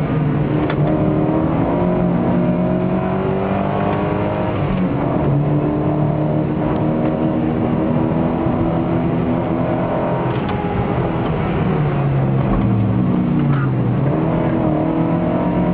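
A four-cylinder sports car engine revs hard and shifts through the gears, heard from inside the car.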